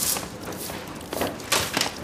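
A broom sweeps the pavement.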